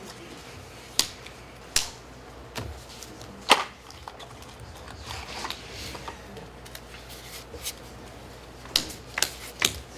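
Cards tap and slide on a table.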